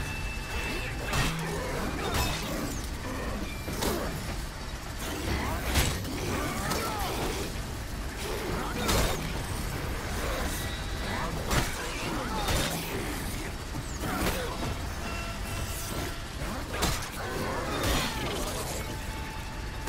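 Monsters shriek and snarl close by.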